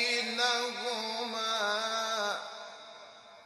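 A man chants a long, drawn-out melodic phrase through a microphone and loudspeakers, and it echoes away.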